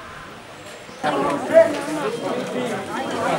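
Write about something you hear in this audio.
A crowd of women chatter loudly close by.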